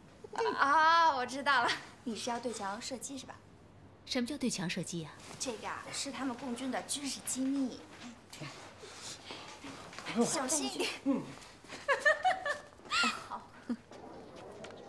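Young women talk and laugh with animation nearby.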